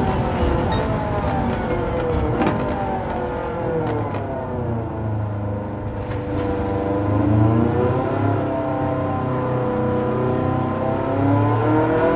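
A racing car engine roars loudly, its pitch rising and falling as the car shifts gears and takes corners.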